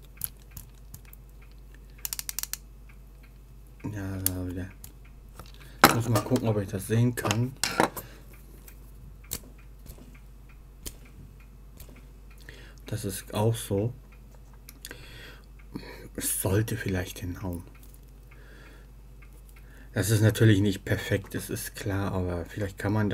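Small plastic parts click and tick as they are handled.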